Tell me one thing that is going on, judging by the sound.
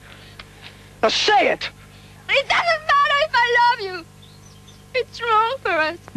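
A young woman speaks with urgency, close by.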